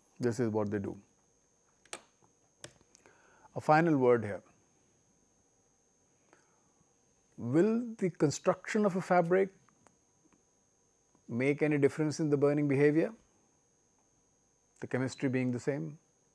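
A man speaks calmly into a close microphone, in short phrases with pauses.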